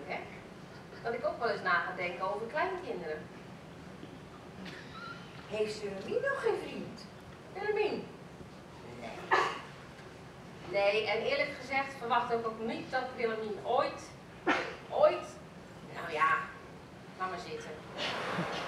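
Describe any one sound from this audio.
Elderly women speak in turn on a stage, heard from the audience in a hall.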